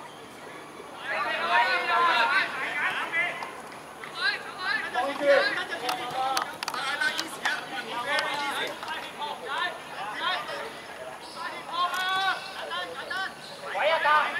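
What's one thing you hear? Young men shout to each other across an open pitch outdoors.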